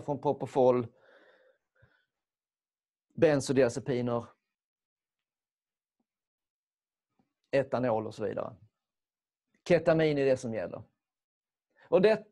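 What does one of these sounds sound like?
An older man speaks calmly and clearly into a close microphone, in short phrases with pauses.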